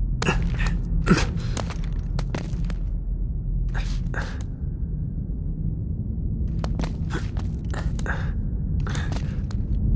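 Footsteps scuff and scrape on stone in a cave.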